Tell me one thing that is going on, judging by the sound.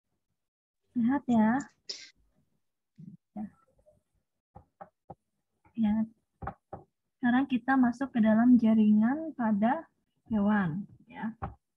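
A young woman speaks calmly and close to the microphone, as if over an online call.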